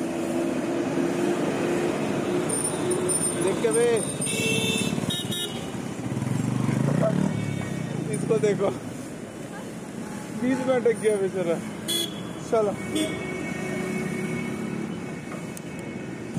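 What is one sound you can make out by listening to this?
Traffic rumbles steadily on a busy road.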